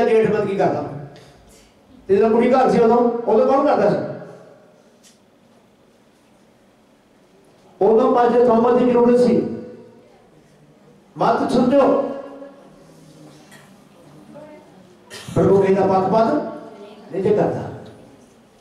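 An elderly man preaches with animation into a microphone, in bursts with pauses, in an echoing room.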